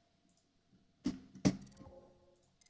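A gun's mechanism clicks and clacks sharply.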